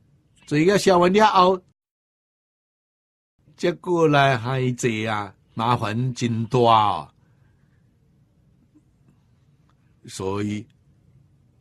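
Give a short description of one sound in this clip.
An elderly man speaks calmly into a close microphone, pausing between phrases.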